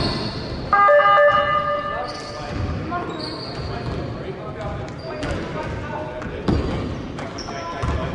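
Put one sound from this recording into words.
A man shouts instructions loudly from the sideline.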